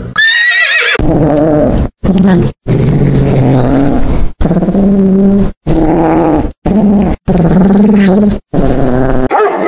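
A cat yowls and meows repeatedly, close by.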